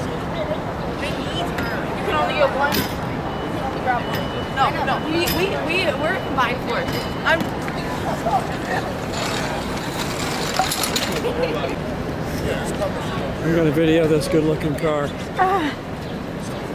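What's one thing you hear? People chatter outdoors in the background.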